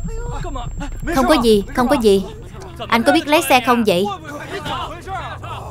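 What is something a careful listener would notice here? Men shout excitedly outdoors.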